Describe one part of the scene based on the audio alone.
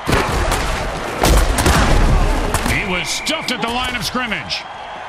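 Heavy bodies crash and thud together in quick blows.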